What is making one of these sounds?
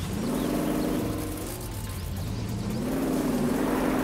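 Water splashes as a vehicle drives through a stream.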